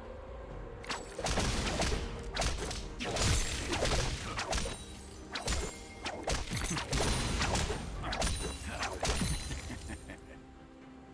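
Magic blasts and weapon hits crash loudly in a video game battle.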